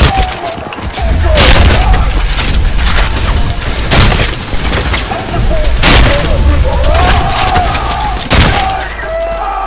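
A gun fires loud bursts of shots.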